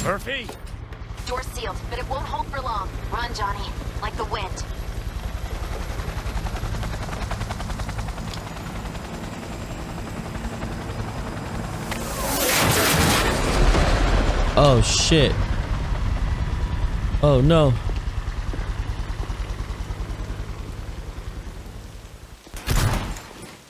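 A helicopter engine drones with a steady, low, pulsing beat.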